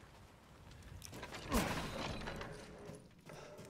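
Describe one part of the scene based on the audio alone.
Heavy wooden doors creak and boom open.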